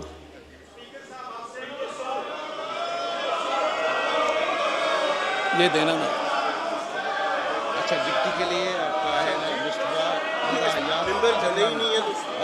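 Many men talk and shout over each other in a large echoing hall.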